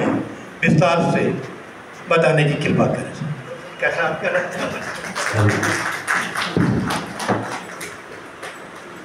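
A man speaks into a microphone over a loudspeaker, in a room with some echo.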